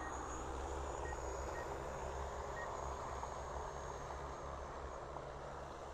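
A drone's propellers buzz and whine as it hovers nearby.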